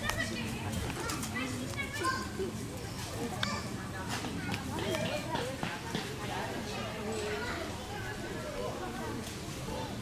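Small animals patter and rustle across dry leaves.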